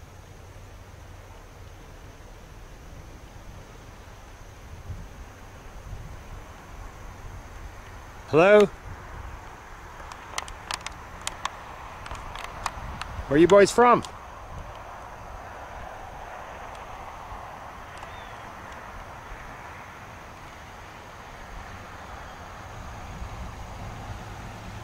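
Wind blows across open ground outdoors.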